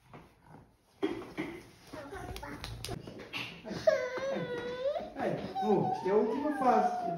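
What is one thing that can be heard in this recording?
A young girl chatters nearby.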